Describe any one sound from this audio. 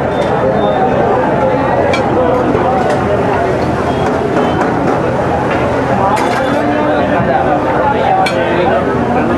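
A metal spatula clinks and scrapes against a hot griddle.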